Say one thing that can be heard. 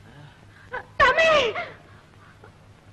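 A woman cries out in alarm.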